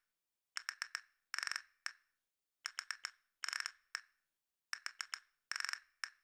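A cartoon bird creature chirps in short, rhythmic clicking bursts.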